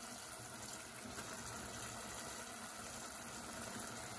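A fish head drops with a soft wet thud into the pot.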